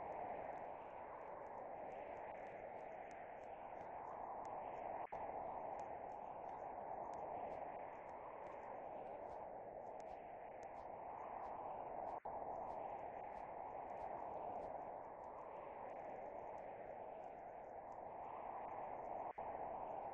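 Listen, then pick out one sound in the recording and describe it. A tornado's wind roars steadily.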